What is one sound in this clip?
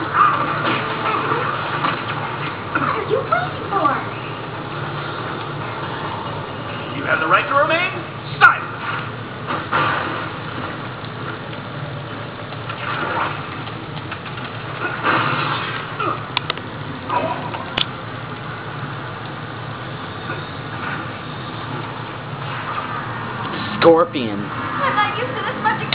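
Video game sound effects whoosh and chime from a television speaker.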